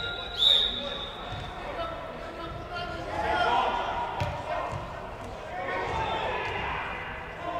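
Players shout to each other across a large echoing indoor hall.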